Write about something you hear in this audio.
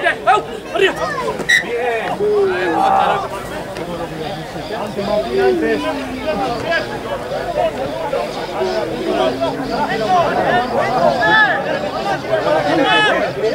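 Spectators nearby call out and chatter.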